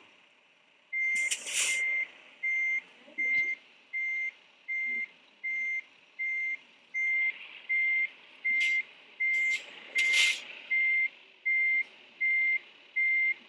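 A semi-truck's reversing alarm beeps.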